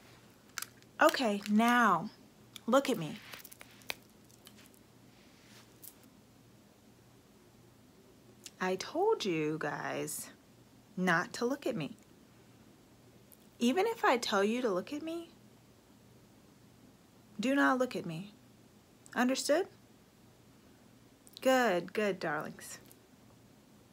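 A young woman talks close to a microphone, with pauses between phrases.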